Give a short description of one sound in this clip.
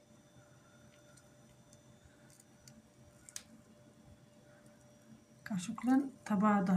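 Flaky pastry crackles and crumbles softly between fingers.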